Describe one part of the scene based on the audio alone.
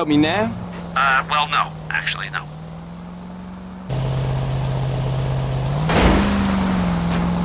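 A motorboat engine hums steadily, growing louder and revving up.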